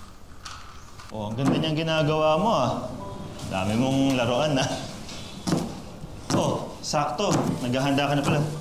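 A knife cuts fruit on a plate.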